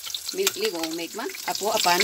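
A fork whisks eggs, clinking against a ceramic bowl.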